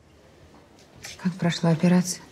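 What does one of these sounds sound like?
A young woman speaks quietly up close.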